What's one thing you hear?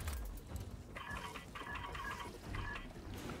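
Electronic keypad beeps sound in short quick bursts.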